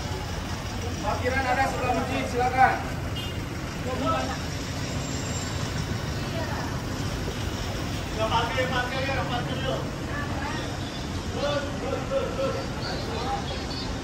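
A woman talks nearby in short bursts.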